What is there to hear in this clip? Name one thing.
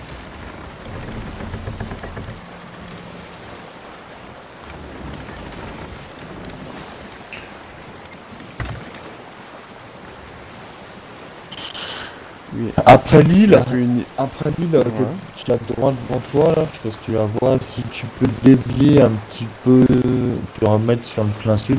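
Ocean waves wash and splash against a sailing ship.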